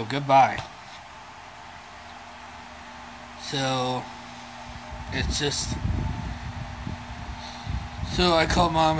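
A man speaks close to a phone microphone in short bursts.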